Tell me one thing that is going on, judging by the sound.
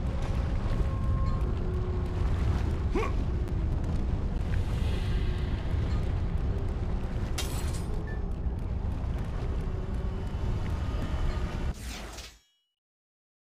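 A deep, loud rumble roars steadily.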